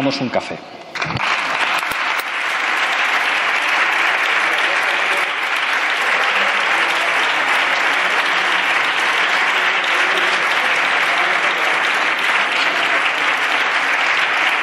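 An audience applauds loudly and steadily.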